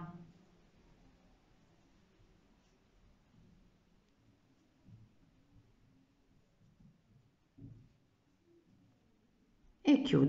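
A metal crochet hook softly clicks and rubs against yarn.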